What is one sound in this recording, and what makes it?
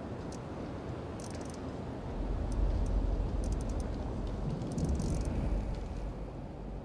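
A safe's dial clicks softly as it is turned.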